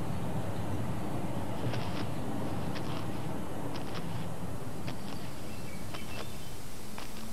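Wind blows steadily outdoors over open ground.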